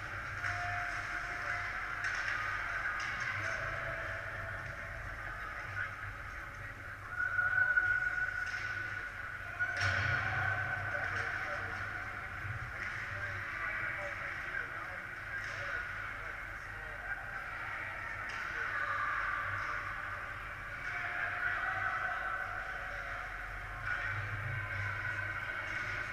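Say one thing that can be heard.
Ice skates scrape and glide on ice far off in a large echoing rink.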